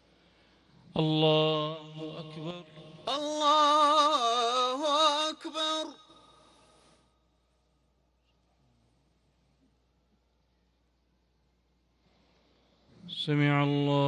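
A man chants in a long, drawn-out voice through loudspeakers outdoors.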